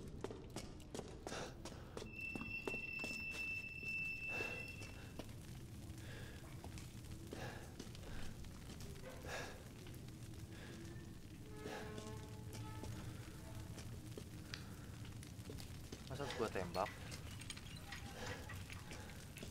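Footsteps crunch on a rough stone floor.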